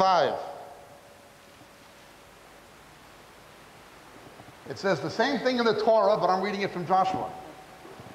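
A man speaks with emphasis into a microphone.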